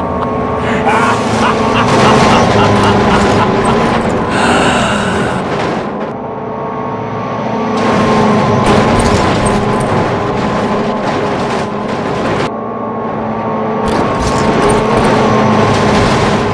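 Train engines rumble along the tracks.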